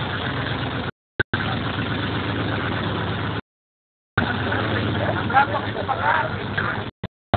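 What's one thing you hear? An off-road vehicle's engine rumbles as it crawls over rocks.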